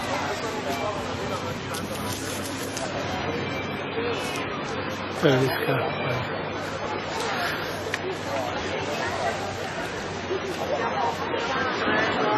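Small waves lap and splash against a wooden pier.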